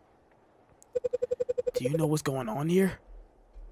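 Dialogue text blips in quick, even beeps.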